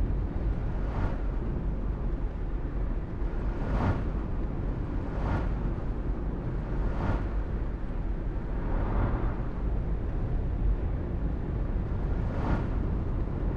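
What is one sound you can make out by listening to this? Oncoming vehicles whoosh past one after another.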